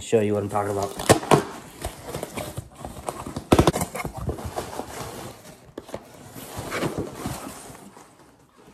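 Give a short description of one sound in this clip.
Cardboard scrapes and rustles as a box is opened.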